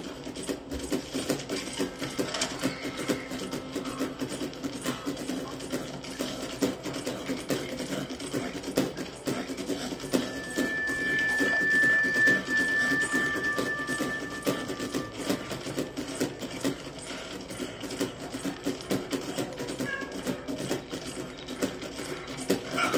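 A horse gallops, its hooves pounding on a dirt trail.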